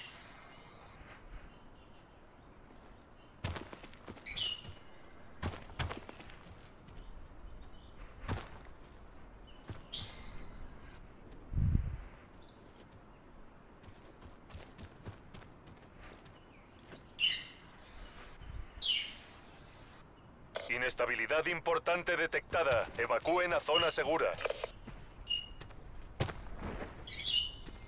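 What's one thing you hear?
Footsteps run across hard ground.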